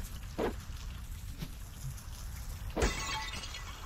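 A door swings open.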